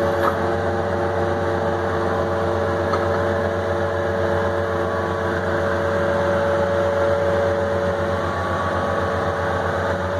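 A diesel engine idles and rumbles steadily up close.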